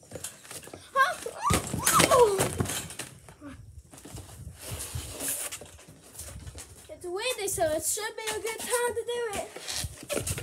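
A young boy shouts and yells excitedly close by.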